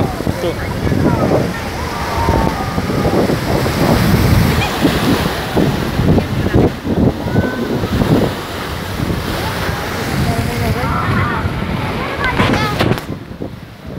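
Wind blows across the microphone in gusts.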